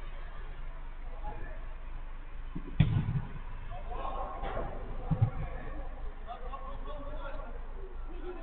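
Men shout and call out to each other at a distance, outdoors.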